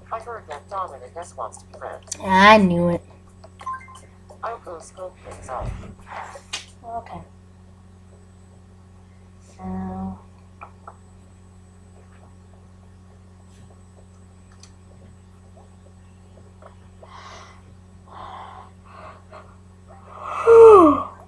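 A handheld game console plays short electronic tones and jingles through its small speaker.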